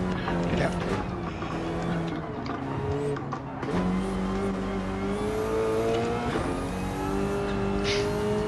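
A racing car engine roars loudly, its pitch rising and falling through gear changes.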